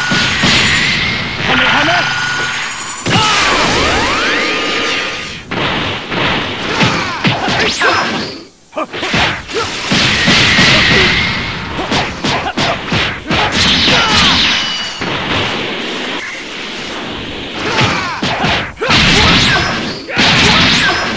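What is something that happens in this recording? Energy blasts whoosh and explode in a fast fight.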